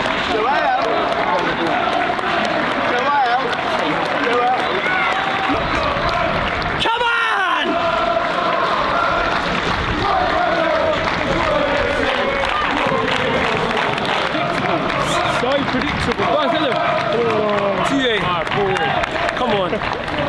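Players clap their hands.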